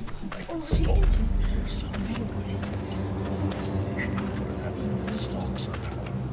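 Footsteps tread slowly on hard ground.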